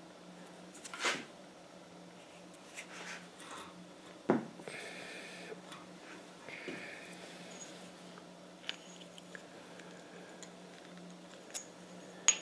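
Metal rods clink and tap against a steel block.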